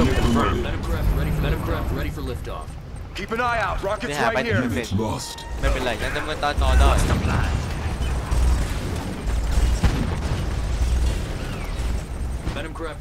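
Explosions boom in a battle.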